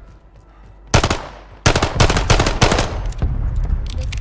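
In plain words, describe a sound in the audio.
Gunshots fire in quick bursts, loud and sharp.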